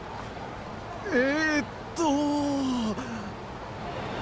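A man answers hesitantly.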